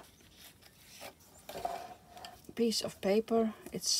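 Paper slides across a board.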